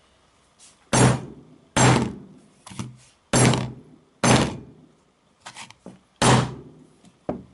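A hammer strikes a phone on a table again and again.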